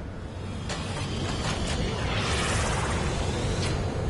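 A spacecraft's engines roar as it flies past.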